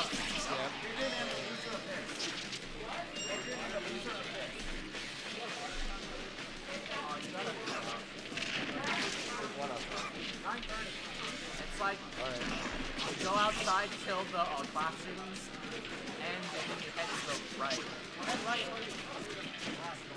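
Two young men commentate excitedly through headset microphones.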